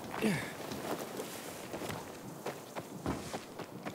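Footsteps thud quickly across the ground.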